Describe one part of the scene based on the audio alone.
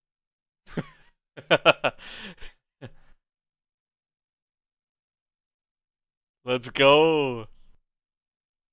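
A young man laughs heartily close to a microphone.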